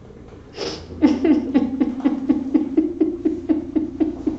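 A woman moans and vocalises in repeated short bursts.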